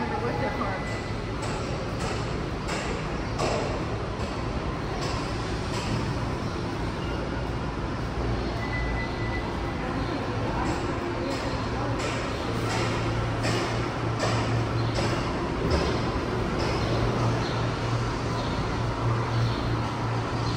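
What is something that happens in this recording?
Footsteps walk steadily on concrete in a large echoing space.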